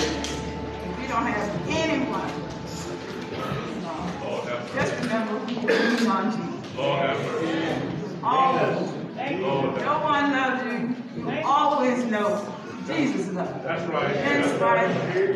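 A woman speaks with feeling through a microphone and loudspeakers in an echoing hall.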